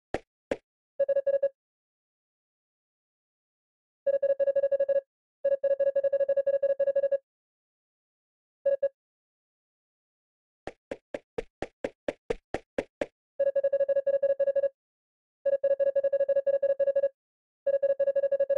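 Rapid electronic beeps chirp in bursts as game dialogue text prints.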